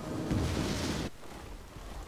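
An explosion booms on impact.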